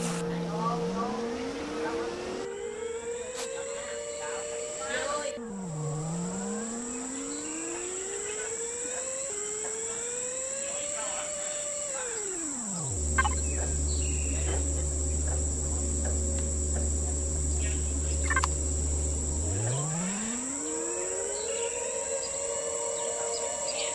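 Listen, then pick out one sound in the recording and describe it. A hovering vehicle's engine whirs, rising and falling in pitch as it speeds up and slows down.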